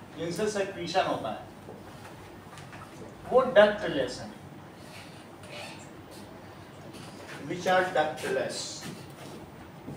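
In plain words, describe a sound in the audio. A man speaks calmly in a lecturing tone, in short bursts.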